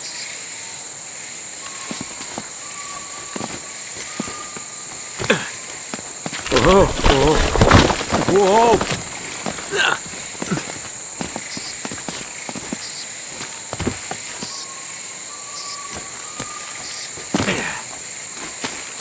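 Footsteps crunch on stone and dirt.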